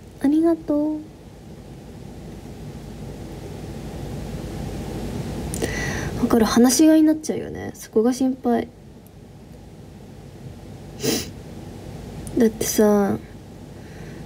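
A young woman speaks softly and close by in short bursts.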